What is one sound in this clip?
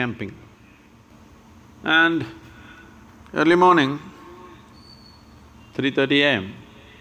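An elderly man speaks calmly into a microphone in short phrases.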